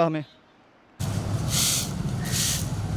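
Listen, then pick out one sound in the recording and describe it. A broom sweeps across the ground with scratchy swishes.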